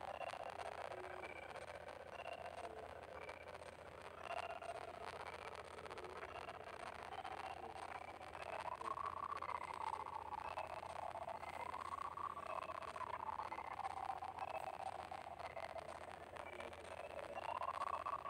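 Cheerful video game music plays steadily.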